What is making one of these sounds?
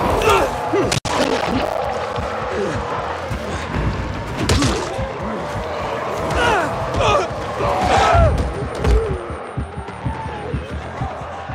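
A creature snarls and growls close by.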